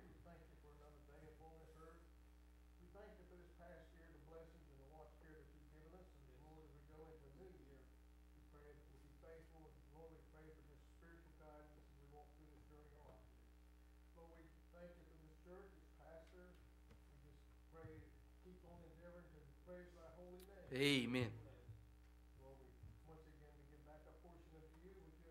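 A man speaks calmly and steadily, heard through a microphone in a room with a slight echo.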